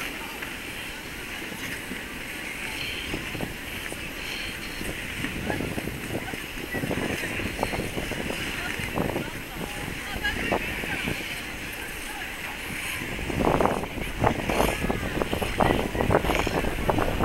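Ice skates scrape and hiss across an ice rink.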